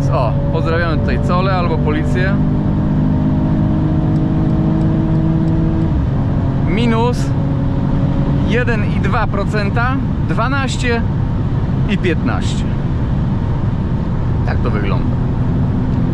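A car engine drones steadily at high speed.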